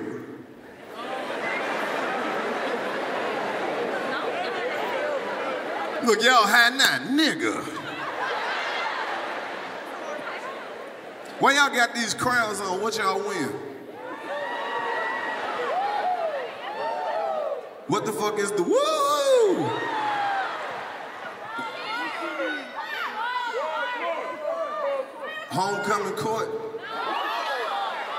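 A large crowd laughs and cheers.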